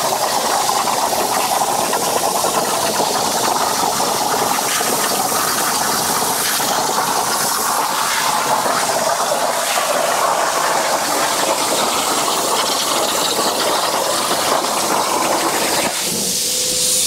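A plasma cutter hisses and roars steadily as it cuts through steel.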